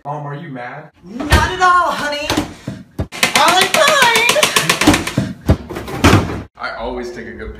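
A young man in a high, mocking voice shouts and sings angrily.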